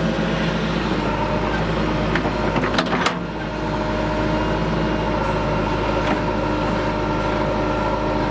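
A digger bucket scrapes and knocks into stony ground.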